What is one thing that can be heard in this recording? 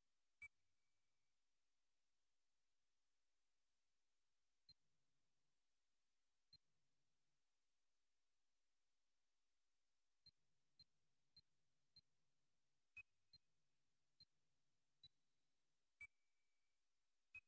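Short menu clicks and beeps sound now and then.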